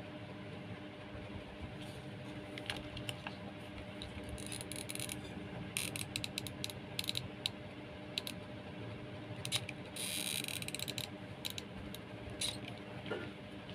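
Twine rustles and crackles as hands handle it.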